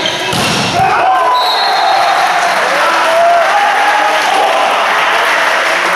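Spectators cheer after the point.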